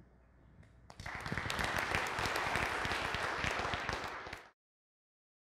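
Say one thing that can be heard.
An audience claps and applauds, then it stops abruptly.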